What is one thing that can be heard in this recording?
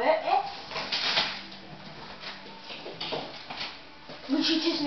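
Wrapping paper rustles and tears as presents are opened.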